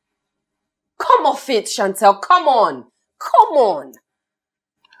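A young woman speaks in disbelief, close by.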